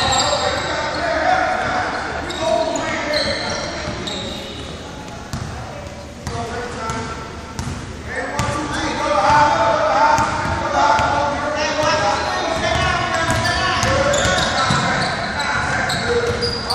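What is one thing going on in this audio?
Young women shout and call out across an echoing hall.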